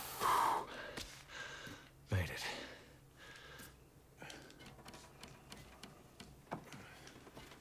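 Hands knock and scrape against a wooden post while climbing.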